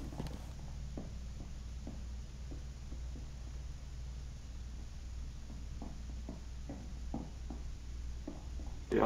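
Footsteps thud softly on a hard floor at a slow walking pace.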